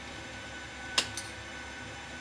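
A switch clicks on a control panel.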